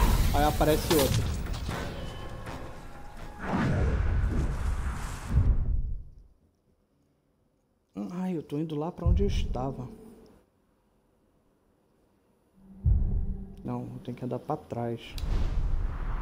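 A middle-aged man talks with animation into a microphone, close by.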